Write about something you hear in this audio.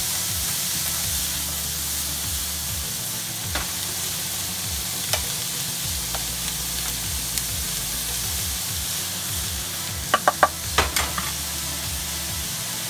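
Onions sizzle steadily in a hot pan.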